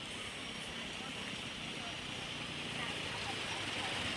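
A small motorbike engine idles.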